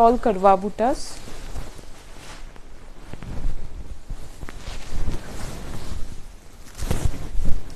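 Silk fabric rustles and swishes.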